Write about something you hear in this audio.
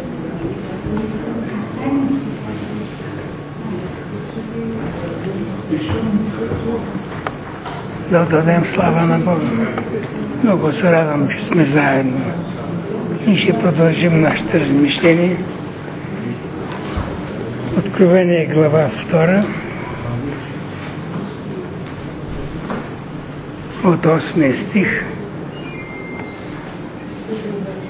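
Voices murmur softly in a small gathering.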